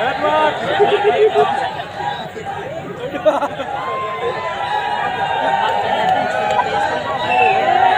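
A singer performs through loudspeakers at an outdoor concert.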